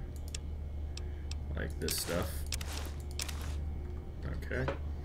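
A game menu clicks as items are moved between lists.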